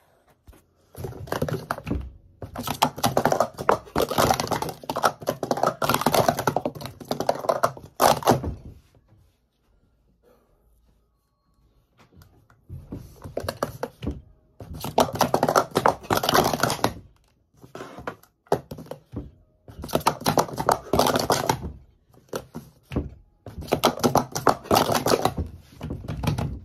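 Plastic cups clatter and tap rapidly as they are stacked and unstacked on a mat.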